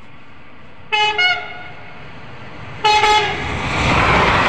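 A train horn sounds in loud blasts.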